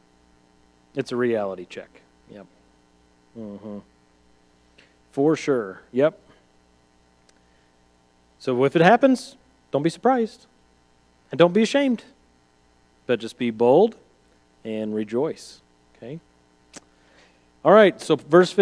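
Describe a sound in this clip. A man speaks calmly, with pauses between phrases.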